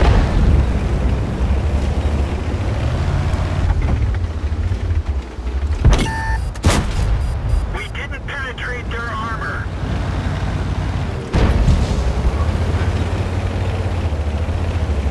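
A tank engine rumbles deeply.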